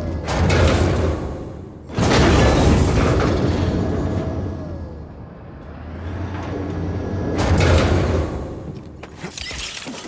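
A large machine rumbles and whooshes loudly as it moves past.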